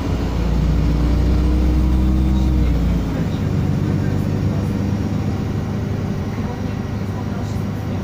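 Cars pass by on the street outside.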